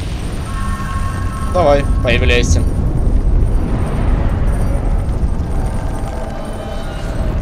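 A shimmering chime rings out and slowly fades.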